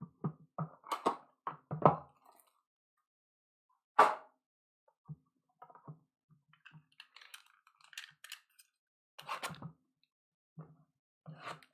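Cardboard boxes and card packs rustle and tap as they are handled.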